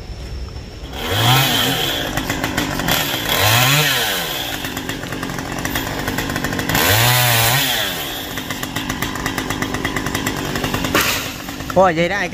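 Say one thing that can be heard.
A chainsaw engine revs up and down repeatedly, loud and close.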